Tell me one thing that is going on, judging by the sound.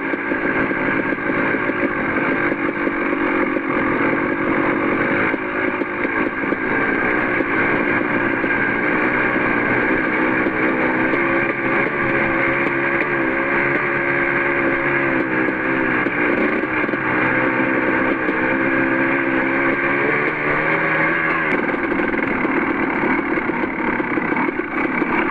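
A dirt bike engine drones steadily close by, rising and falling in pitch.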